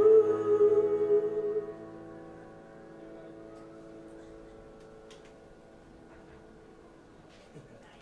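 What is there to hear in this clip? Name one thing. A piano chord rings out and slowly fades away.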